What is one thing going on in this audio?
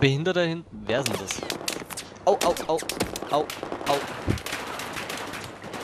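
Rapid gunshots crack in bursts.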